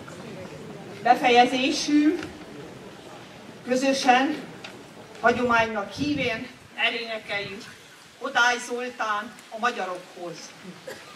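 A woman speaks calmly through a microphone outdoors.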